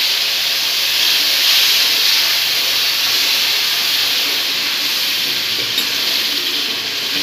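Food sizzles and bubbles loudly in a hot pan.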